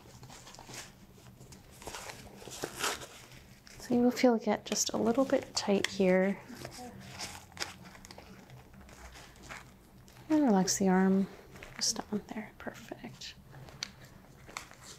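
A blood pressure cuff rustles as it is wrapped around an arm.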